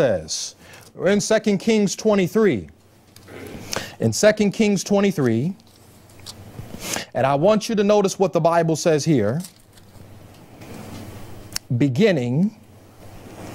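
A man speaks clearly into a microphone in measured phrases, reading aloud.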